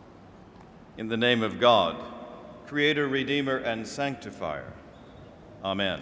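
A man chants in a steady voice, heard through a microphone in a large echoing room.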